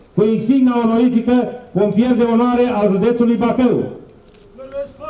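An older man speaks loudly through a microphone and loudspeakers.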